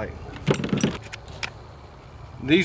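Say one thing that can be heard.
Metal clicks as a man handles a shotgun.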